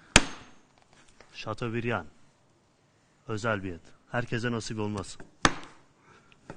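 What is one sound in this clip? A knife knocks on a wooden cutting board.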